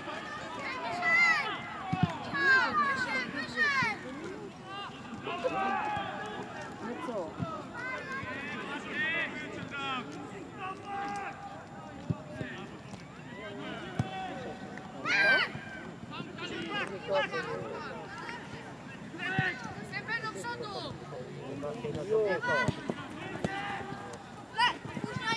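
Children shout and call out to each other across an open field.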